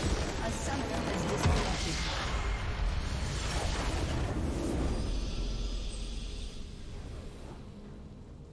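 A huge magical explosion booms and crackles, then rumbles away.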